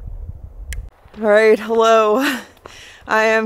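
A young woman speaks cheerfully, close up.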